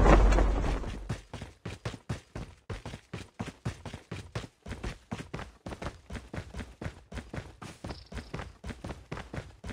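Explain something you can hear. Quick footsteps thud on the ground.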